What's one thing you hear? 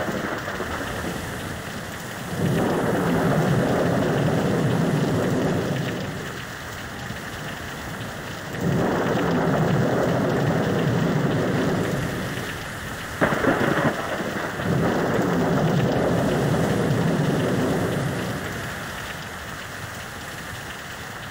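Waves surge and wash in slow swells.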